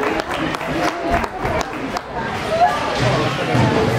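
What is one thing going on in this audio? Skates scrape and hockey sticks click on ice in a large echoing rink.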